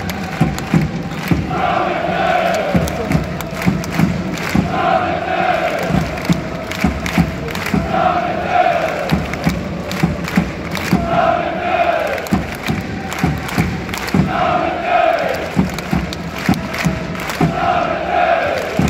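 A large crowd of football supporters chants in unison in an open-air stadium.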